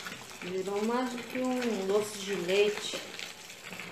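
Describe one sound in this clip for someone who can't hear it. Water pours from a tap into a tub of liquid.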